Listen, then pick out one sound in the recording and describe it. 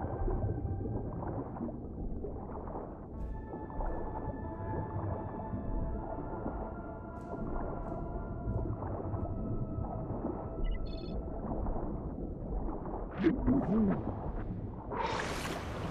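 Muffled water rushes and gurgles underwater.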